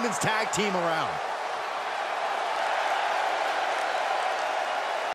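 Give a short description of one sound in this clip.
A large crowd cheers loudly in a big arena.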